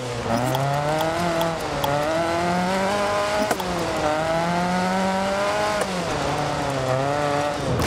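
Tyres skid and crunch over loose gravel.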